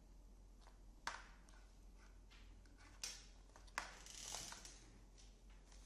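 A cable rustles and clicks as hands handle it.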